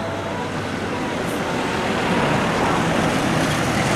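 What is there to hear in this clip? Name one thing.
A pickup truck drives past close by.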